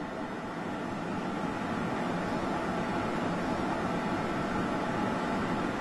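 Hands peel thin paper-like sheets with a soft rustle.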